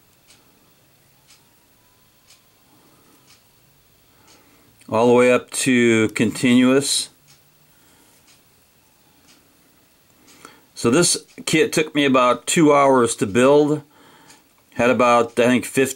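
A small switch clicks softly.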